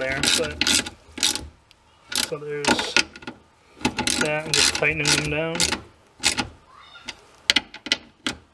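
A metal latch clicks and rattles.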